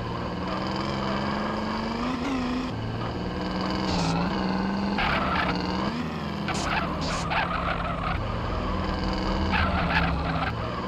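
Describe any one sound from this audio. A car engine hums steadily and revs as the car drives.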